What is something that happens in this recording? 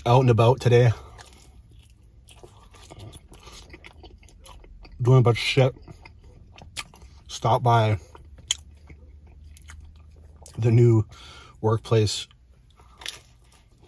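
A young man chews and smacks his lips while eating.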